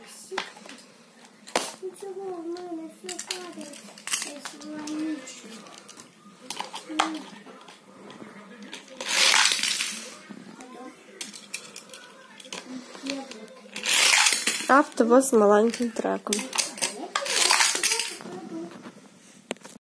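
Plastic toy parts click and knock.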